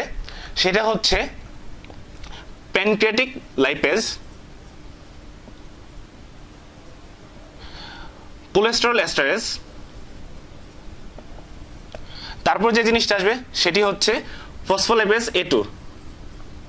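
A young man speaks calmly in short phrases, close by.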